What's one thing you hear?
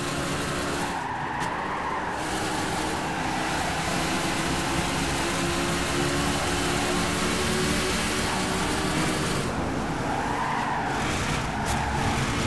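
Tyres squeal through a turn.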